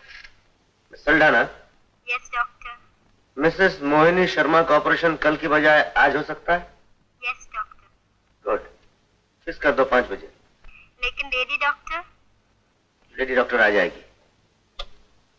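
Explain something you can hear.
A middle-aged man speaks forcefully nearby, in short bursts.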